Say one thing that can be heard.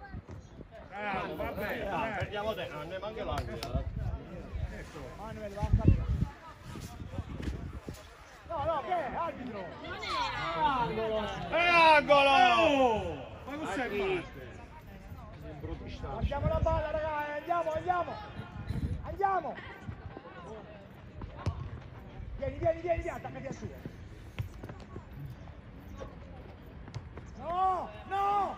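Young players shout to each other across an open pitch outdoors.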